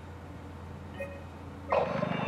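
A computer terminal beeps as a menu option is selected.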